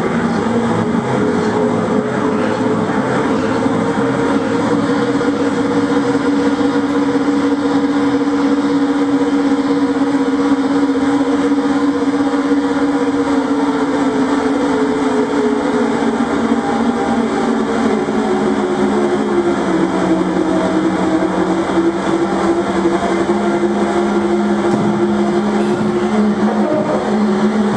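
Electronic instruments drone steadily and slowly shift in pitch.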